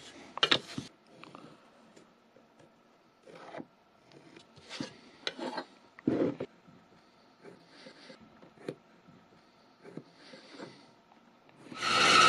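A pencil scratches on wood.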